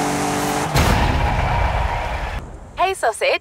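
A sports car engine revs and roars.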